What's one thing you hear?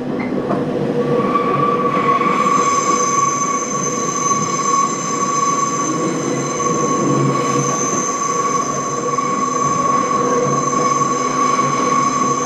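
A train's motor whines with a steady high hum.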